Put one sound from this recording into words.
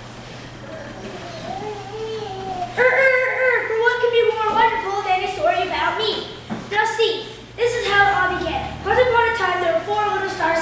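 A child speaks loudly on a stage in a large echoing hall.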